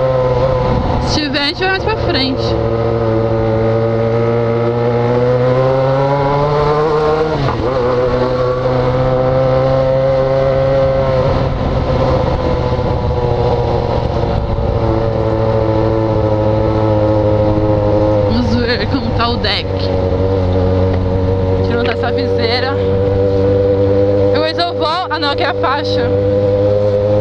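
A motorcycle engine hums steadily at low speed, rising and falling gently.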